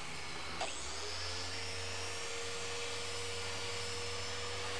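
A machine polisher whirs steadily on a car's body.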